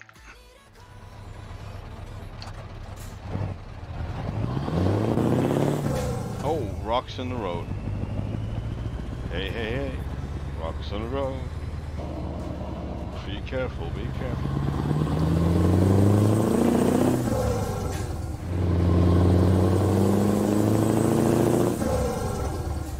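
A truck engine hums and revs up through the gears.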